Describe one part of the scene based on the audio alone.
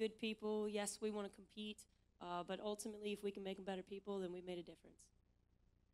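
A young woman speaks calmly into a microphone.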